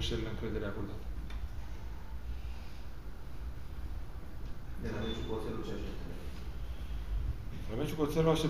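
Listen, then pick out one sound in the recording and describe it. A young man speaks calmly into microphones close by, pausing between phrases.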